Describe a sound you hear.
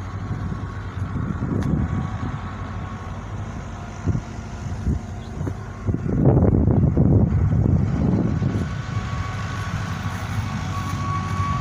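Wind blows outdoors, rumbling against the microphone.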